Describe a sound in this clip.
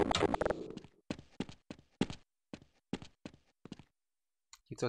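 Gunshots crack in quick, separate bursts.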